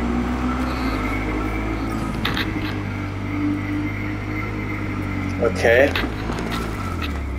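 A motorcycle engine hums steadily as it speeds along.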